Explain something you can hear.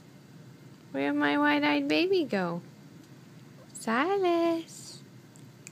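A newborn baby whimpers and fusses.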